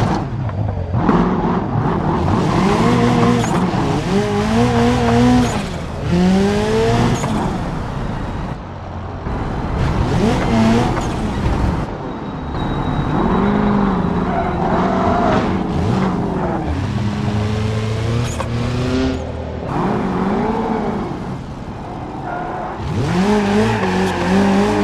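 A car engine revs up and down as gears shift.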